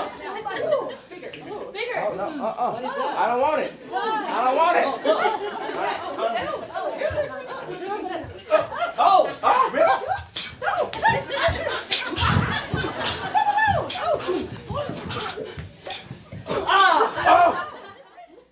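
Bare feet thump and slide on a floor.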